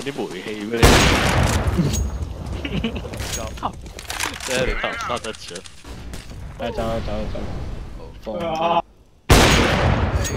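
A sniper rifle fires with a loud, echoing crack.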